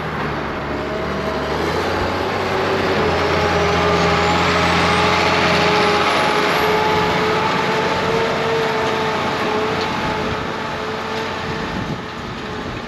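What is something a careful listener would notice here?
A diesel tractor pulling a cultivator drives past under load and moves away.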